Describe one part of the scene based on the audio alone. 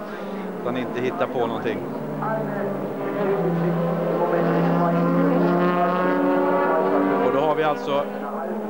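A racing car engine roars at high revs as the car speeds past.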